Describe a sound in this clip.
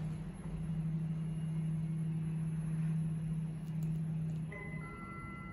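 An elevator motor hums steadily and then stops.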